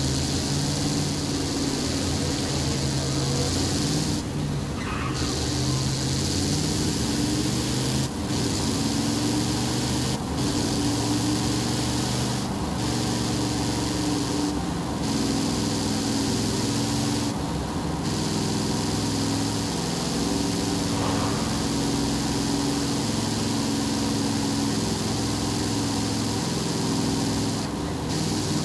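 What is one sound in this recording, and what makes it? A truck engine hums and revs steadily, shifting gears now and then.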